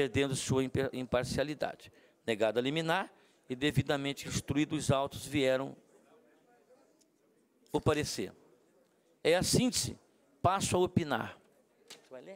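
An older man speaks calmly into a microphone, heard through a loudspeaker in a large room.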